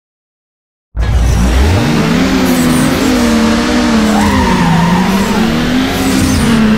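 Several car engines rev and idle together at a start line.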